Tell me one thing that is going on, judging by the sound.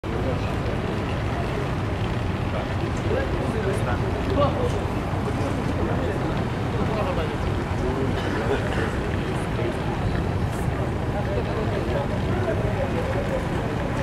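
A crowd of men and women talks and murmurs nearby.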